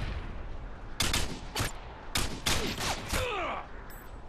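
Gunshots from a video game crack in quick bursts.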